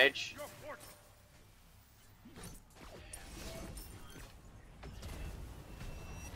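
Magical energy crackles and booms in bursts.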